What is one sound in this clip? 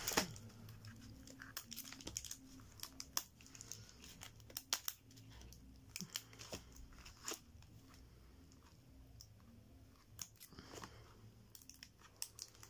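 Plastic packaging crinkles and taps as hands handle small items.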